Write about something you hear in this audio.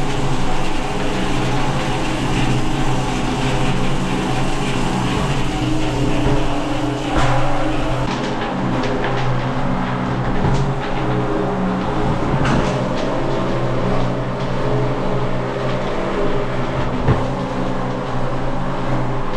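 A motor-driven grinder hums steadily while it crushes grain.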